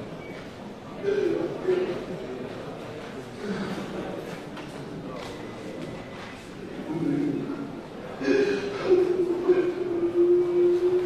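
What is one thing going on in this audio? An elderly man speaks softly into a microphone held close to him.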